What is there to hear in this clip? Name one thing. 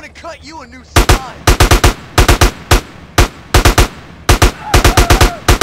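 A shotgun fires loud shots in quick bursts.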